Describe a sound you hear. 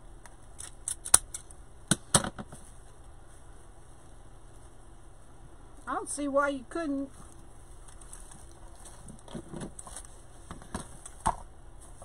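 Plastic tinsel rustles and crinkles as hands move it about.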